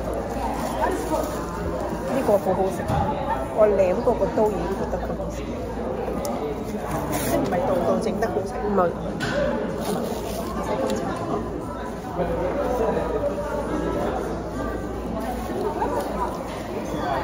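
A young woman talks calmly close to the microphone.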